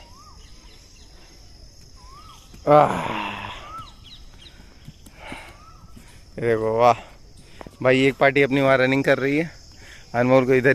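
A young boy runs barefoot across stone paving with soft, quick footsteps.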